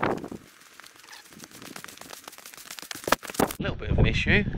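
Footsteps crunch on dry dirt close by.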